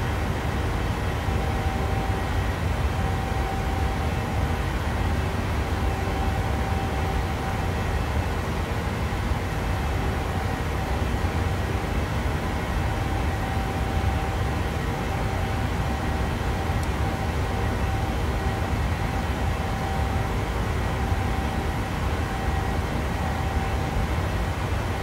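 Jet engines hum in a steady low roar.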